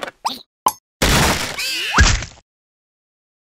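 A watermelon rind thuds and slaps as it flips over.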